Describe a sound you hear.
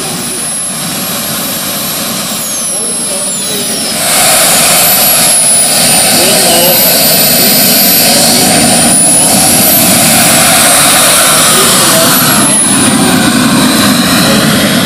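Model jet turbine engines whine at a high pitch, growing much louder.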